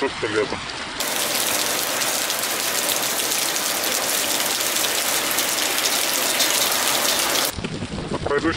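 Heavy rain patters steadily on puddles and wet pavement.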